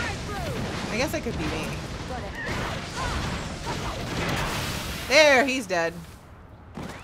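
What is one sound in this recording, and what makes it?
Game battle effects clash and blast.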